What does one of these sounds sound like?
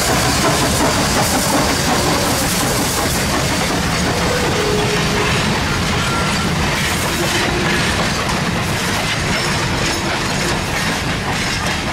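Passenger cars clatter over rail joints as they roll past.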